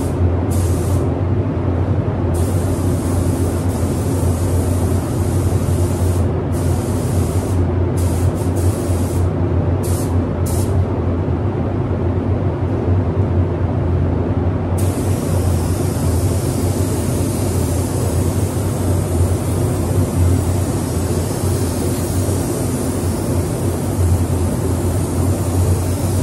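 A spray gun hisses in short bursts, then steadily.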